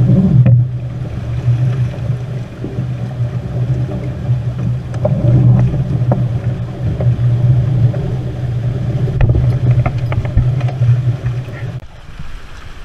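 Wind buffets the microphone on open water.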